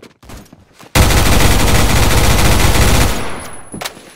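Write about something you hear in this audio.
A rifle fires a rapid burst of loud automatic shots.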